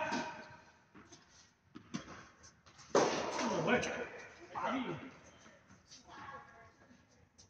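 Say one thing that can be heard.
Tennis balls are struck with rackets in a large echoing hall.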